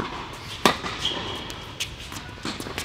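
Sneakers squeak on a hard court.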